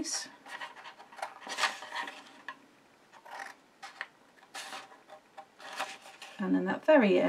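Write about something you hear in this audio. Scissors snip through paper.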